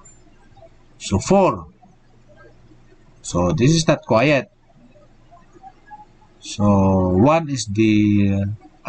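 A man speaks calmly and close into a microphone, in short phrases.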